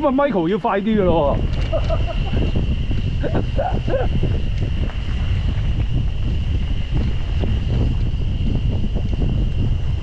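Mountain bike tyres rumble and crunch over a bumpy dirt trail.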